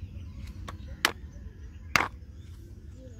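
A plastic egg carton snaps open with a click.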